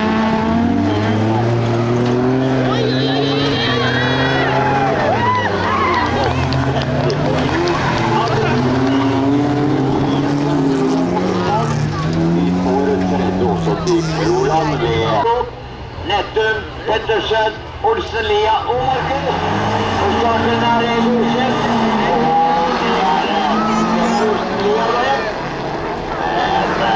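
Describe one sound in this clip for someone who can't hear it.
Racing car engines roar and rev hard, rising and falling in pitch.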